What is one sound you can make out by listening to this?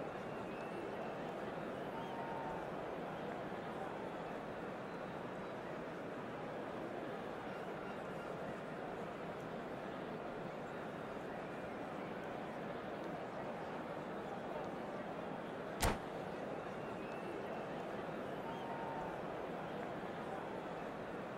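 A large crowd murmurs and roars steadily in a big open space.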